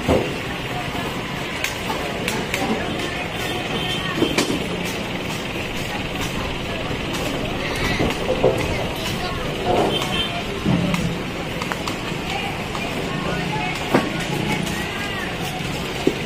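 A crowd murmurs outdoors on a busy street.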